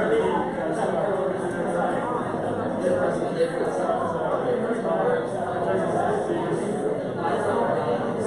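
A man speaks calmly in reply.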